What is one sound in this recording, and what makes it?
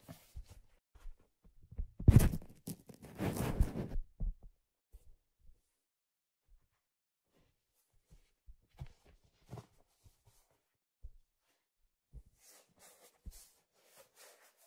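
Hands handle and tap a stiff plastic object close to a microphone, with soft knocks and rustles.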